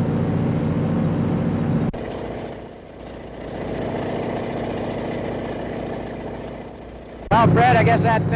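A small plane's engine drones overhead.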